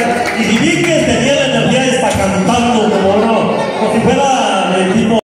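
Live band music plays loudly through loudspeakers.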